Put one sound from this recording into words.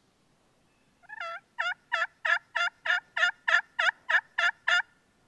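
A hand-held turkey call yelps in a quick, even series of loud notes.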